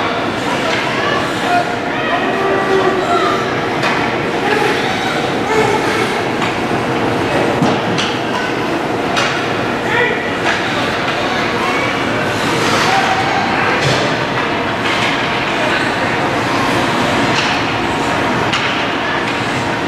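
A crowd murmurs and calls out in a large echoing rink.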